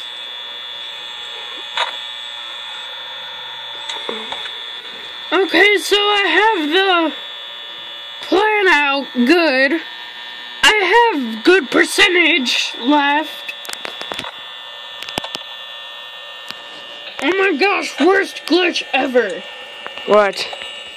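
A steady electronic hum plays from a small tablet speaker.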